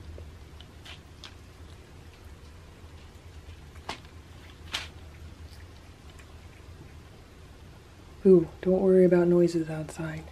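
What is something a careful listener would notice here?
A cat chews and smacks wet food close by.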